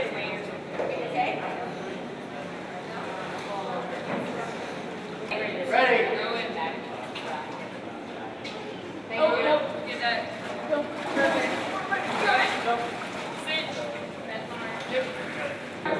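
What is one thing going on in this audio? Water splashes and sloshes.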